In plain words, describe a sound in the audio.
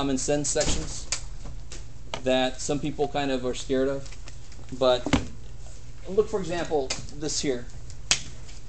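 A man speaks nearby in a calm lecturing tone.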